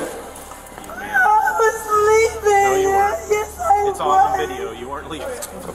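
A young woman cries and wails loudly close by.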